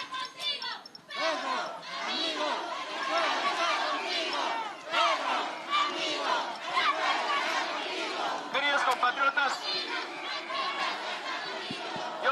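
A large crowd shouts and chants loudly outdoors.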